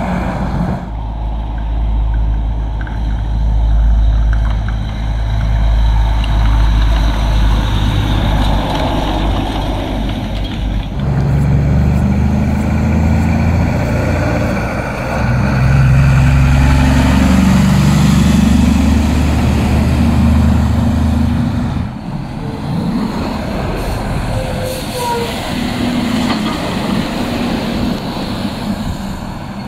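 Heavy truck engines rumble deeply as trucks pass slowly.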